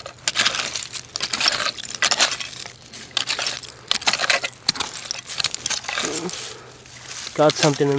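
A hand trowel scrapes and crunches through dry soil.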